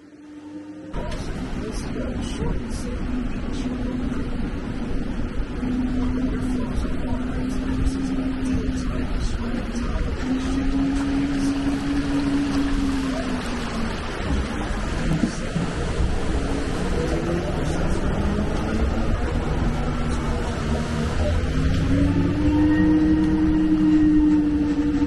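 Tyres splash and churn through shallow rushing water.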